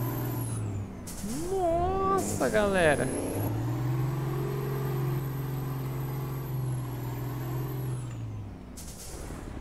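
A truck engine drones steadily, then fades.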